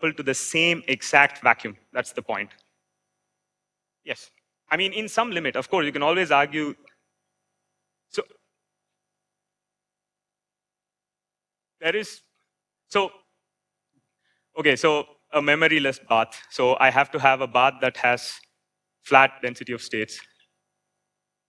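A young man speaks calmly into a microphone, with pauses.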